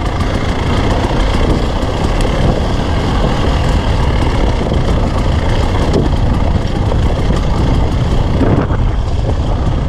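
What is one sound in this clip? Tyres crunch and rattle over loose rocks.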